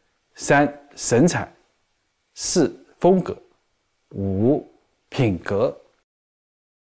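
A young man speaks calmly and slowly, close to a microphone.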